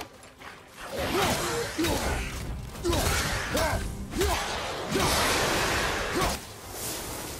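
Creatures snarl and screech during a fight.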